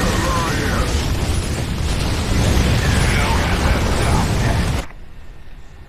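Rapid gunfire rattles with booming blasts.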